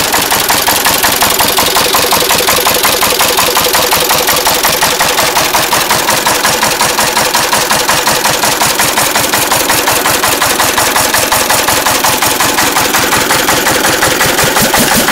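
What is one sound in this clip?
Metal parts on an engine clatter and tick rapidly.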